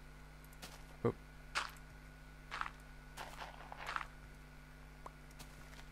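Wooden blocks are set down with soft knocks.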